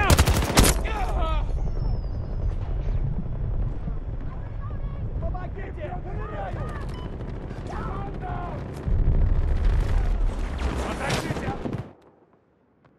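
Gunfire rattles close by.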